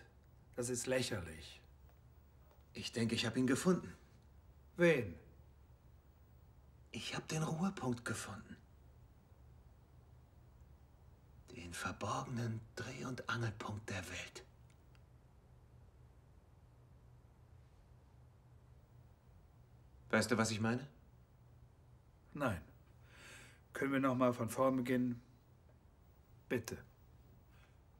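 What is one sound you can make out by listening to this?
A man speaks calmly and quietly nearby, in short phrases with pauses.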